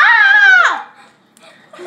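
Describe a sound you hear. A young girl squeals loudly with delight.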